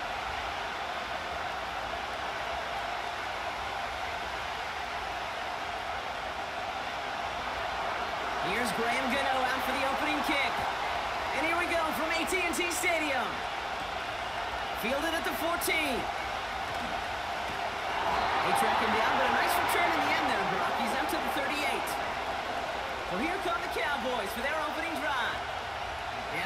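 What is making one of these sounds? A large crowd roars steadily in a big, echoing stadium.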